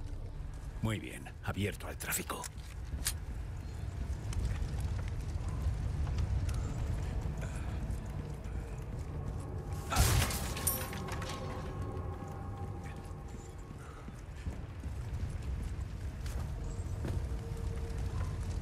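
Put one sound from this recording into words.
Footsteps scrape on stone.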